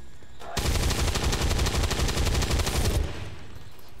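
A heavy machine gun fires a rapid, loud burst.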